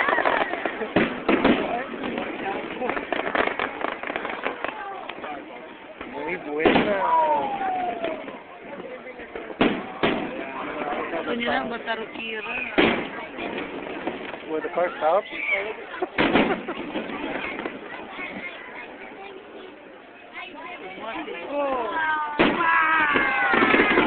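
Fireworks boom and bang in the night sky.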